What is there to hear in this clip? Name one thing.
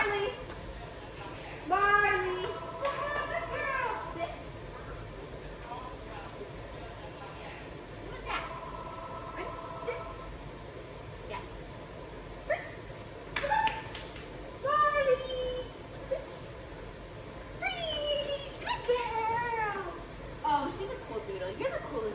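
A young woman talks to a dog in a lively, high-pitched voice, close by.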